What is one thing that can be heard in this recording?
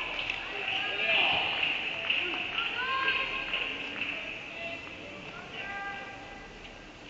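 Young women cheer and shout in a large echoing hall.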